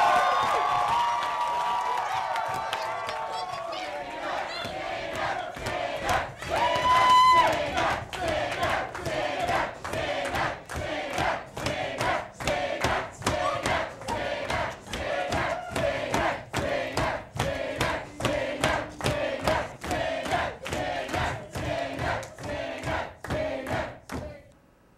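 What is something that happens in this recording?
A crowd of young men and women cheers and shouts loudly.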